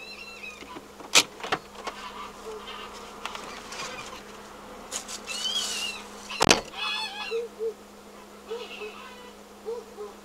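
Geese honk loudly nearby.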